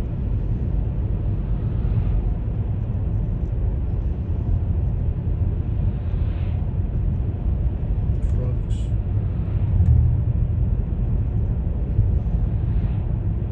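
A car's engine rumbles steadily as it drives along a road.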